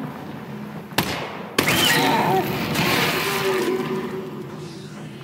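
A gun fires a burst of loud shots.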